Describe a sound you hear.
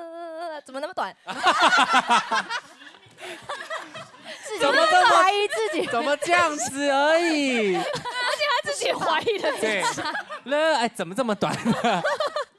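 Young women laugh loudly together.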